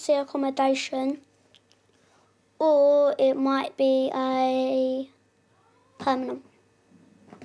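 A young boy speaks quietly in short phrases, close by.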